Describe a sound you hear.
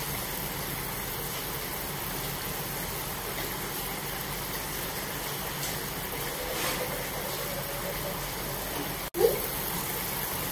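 Water boils and bubbles steadily in a pan.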